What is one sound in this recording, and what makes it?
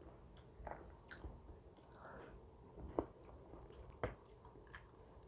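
A woman eats shaved ice close to a microphone, with soft wet chewing and slurping.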